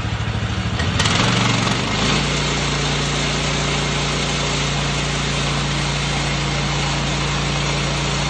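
A sawmill engine revs up and then runs at a loud steady roar.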